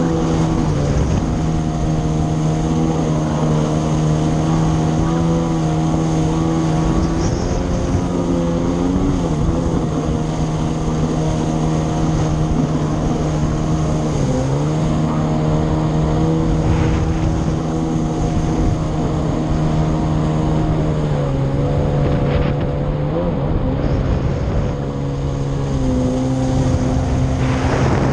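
Water splashes and rushes against the hull.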